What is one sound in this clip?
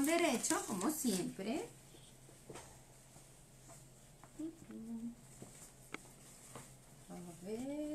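Fabric rustles as it is handled and shaken.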